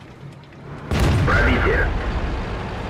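A tank cannon fires with a loud boom.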